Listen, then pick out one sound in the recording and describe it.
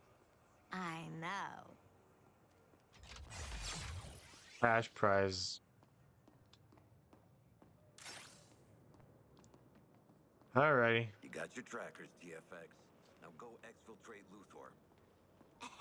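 A young man talks close to a microphone, in short bursts.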